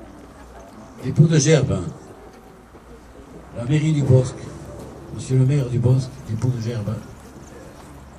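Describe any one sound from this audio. A man speaks out loud in short phrases, outdoors.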